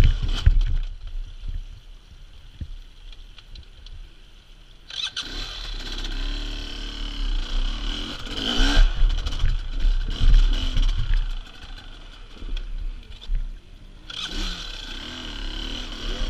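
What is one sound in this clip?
Tyres crunch and slip over wet rock.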